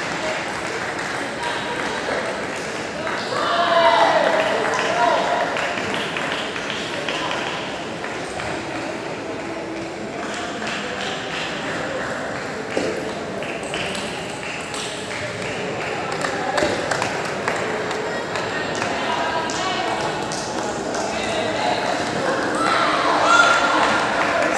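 Table tennis balls click on paddles and tables in a large echoing hall.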